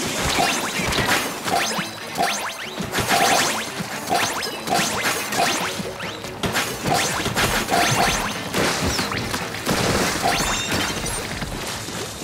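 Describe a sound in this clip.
Video game ink guns fire in quick, splattering bursts.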